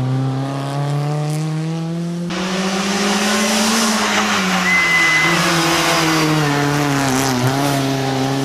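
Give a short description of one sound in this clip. A rally car engine roars loudly and revs as the car approaches and passes close by.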